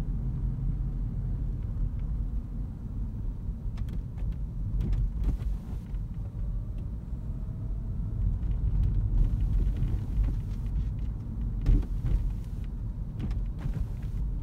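A car engine hums low and steady inside a moving car.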